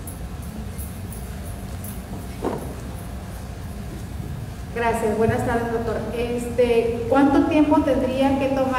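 People murmur quietly in the background.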